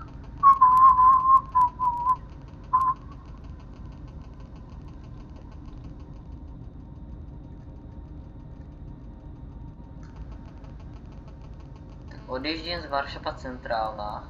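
A train rolls steadily along a track with a low rumble.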